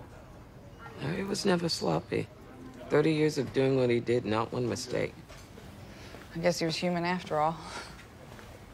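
A woman speaks quietly and emotionally, close by.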